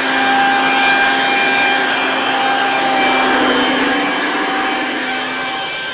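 A pressure washer motor drones steadily.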